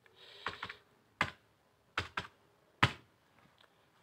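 Calculator keys click as fingers press them.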